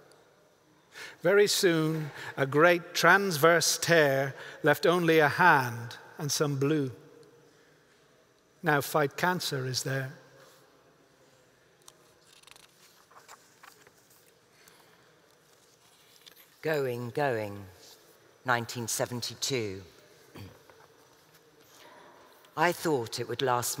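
A man reads aloud calmly through a microphone in a large echoing hall.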